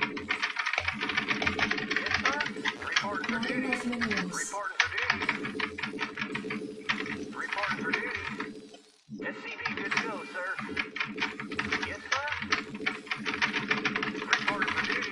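Small machines clank and click rapidly as they mine.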